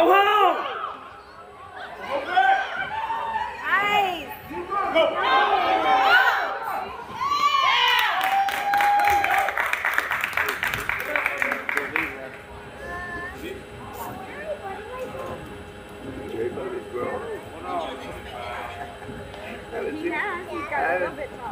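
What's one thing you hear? Young women on a team shout and chant loudly outdoors.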